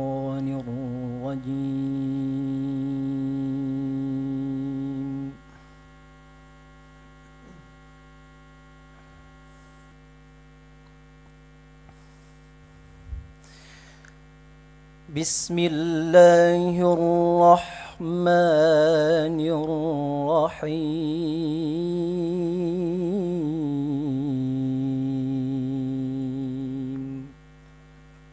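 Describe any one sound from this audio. A young man chants in a long, wavering melodic voice through a microphone, with pauses between phrases.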